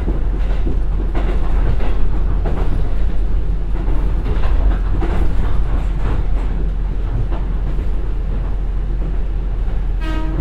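Wind rushes past outside a moving train.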